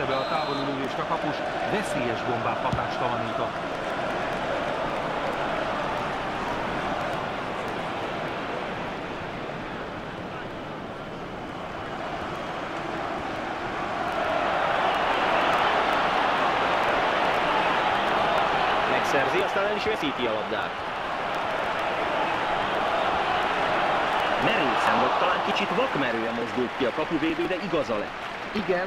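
A large stadium crowd roars steadily, swelling louder midway.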